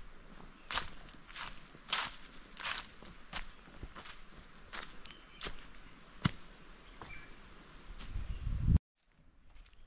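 Footsteps crunch on dry leaves at a steady walking pace.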